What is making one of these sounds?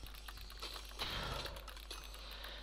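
A spider hisses close by.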